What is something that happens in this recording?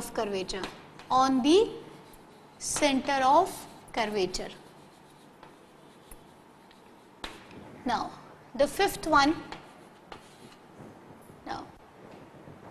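A young woman speaks clearly in a lecturing tone.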